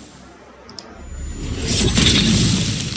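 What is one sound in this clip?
A blade slashes through the air with a swoosh.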